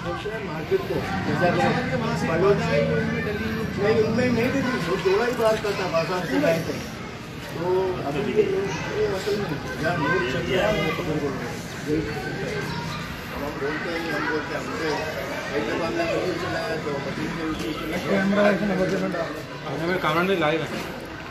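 Several men talk nearby, outdoors.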